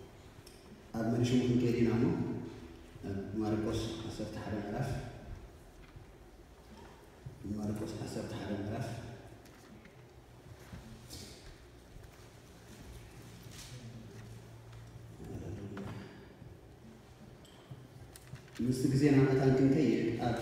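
A man reads aloud through a microphone in a large echoing hall, pausing between phrases.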